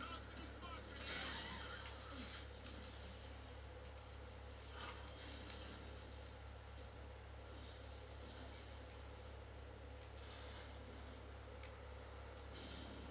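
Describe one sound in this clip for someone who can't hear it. A shooter video game plays through a television's speakers.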